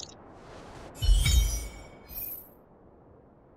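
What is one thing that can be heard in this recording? A bright notification chime rings out.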